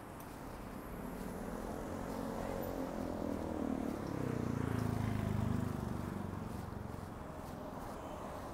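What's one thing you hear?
A motorcycle passes close by, growing louder and then fading.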